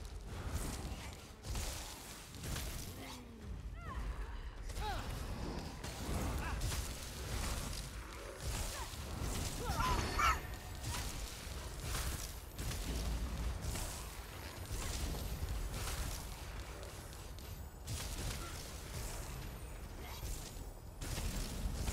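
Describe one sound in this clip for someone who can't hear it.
Magic spells whoosh and burst in bursts.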